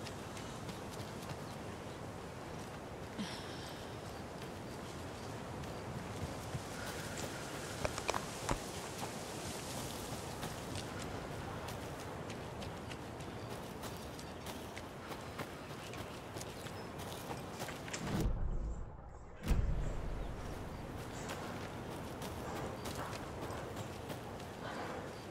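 Footsteps crunch slowly over leaves and dirt.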